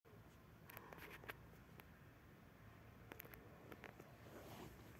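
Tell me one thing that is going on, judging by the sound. A wooden stick scrapes lightly against a fingernail.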